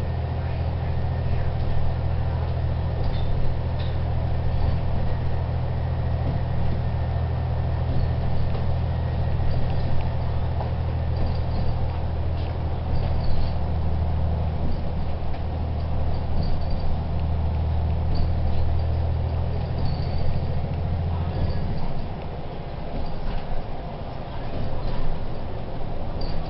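A bus engine drones low and steady from inside the cabin, easing off near the end.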